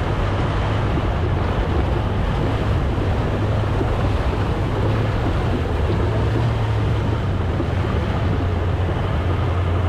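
Water ripples and trickles over rocks nearby.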